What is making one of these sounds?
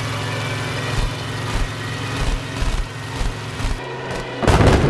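Machine guns fire in rapid bursts.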